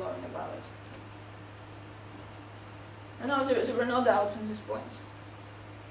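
A woman lectures calmly into a microphone, with short pauses.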